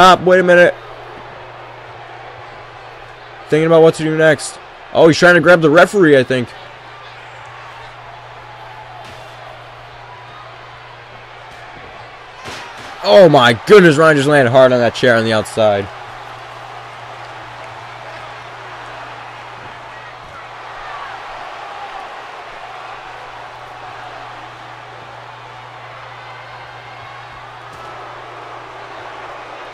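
A large crowd cheers and murmurs steadily in an echoing arena.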